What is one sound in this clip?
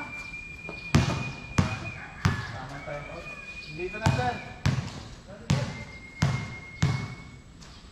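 A basketball bounces on a hard court, echoing under a roof.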